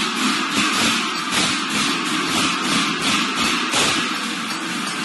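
Many hand cymbals clash in a steady rhythm.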